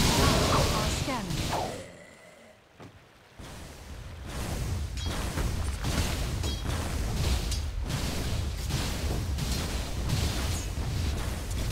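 Game spells and combat effects clash and crackle.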